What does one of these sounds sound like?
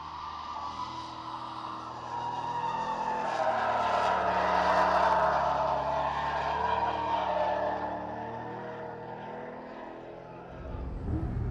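A sports car engine revs and shifts through gears as the car speeds past.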